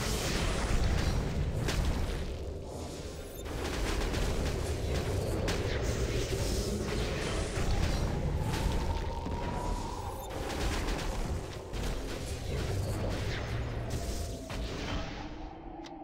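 Magic blasts and hits crash repeatedly during a fight.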